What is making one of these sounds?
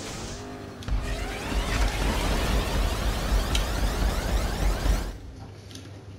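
A car crashes with a loud impact.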